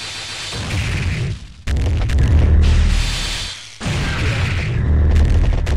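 Loud explosive blasts boom and crackle.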